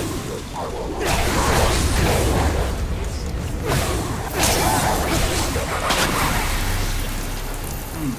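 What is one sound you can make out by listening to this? Magical blasts whoosh and crackle.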